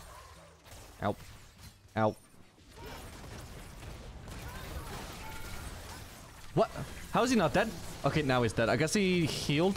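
Magic spells burst and crackle in a fast fight.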